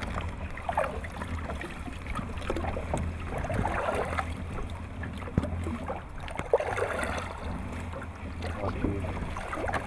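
Water laps against a small boat.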